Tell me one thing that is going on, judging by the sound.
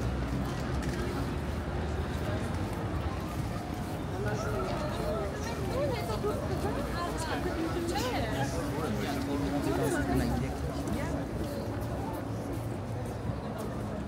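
Footsteps patter on paving stones.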